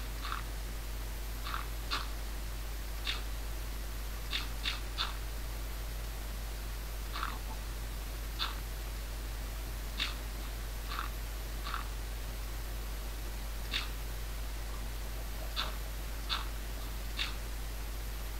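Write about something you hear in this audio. Blocks of dirt are placed one after another with short, soft crunchy thuds.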